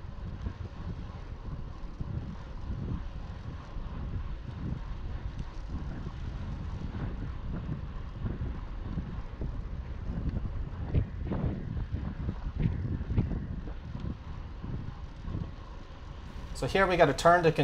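Wind buffets and rumbles loudly.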